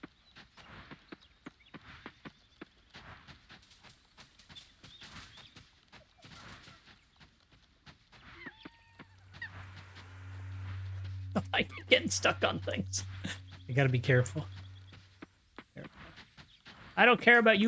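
Footsteps patter quickly on grass and dirt.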